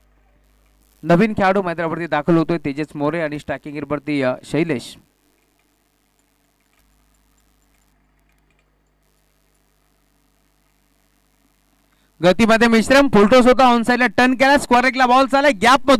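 A man commentates with animation through a microphone.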